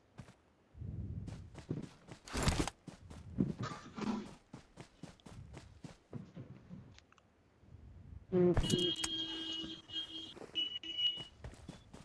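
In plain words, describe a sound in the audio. Footsteps run quickly through dry grass.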